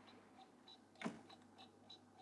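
A clock's alarm button clicks once sharply.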